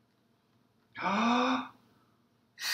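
A young man exclaims loudly close by.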